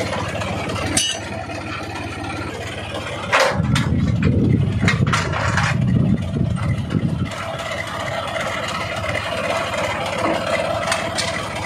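Heavy metal chains clank against a steel fitting.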